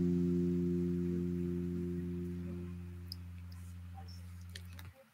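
A single electric guitar note rings out through a loudspeaker and slowly fades.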